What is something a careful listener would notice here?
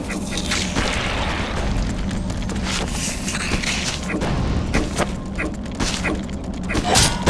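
Quick footsteps patter across a metal bridge.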